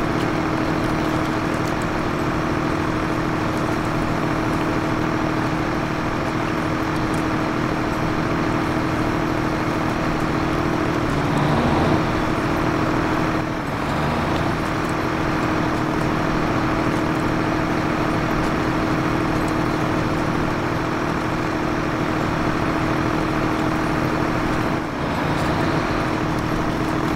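Tyres crunch and slip over dirt and rocks.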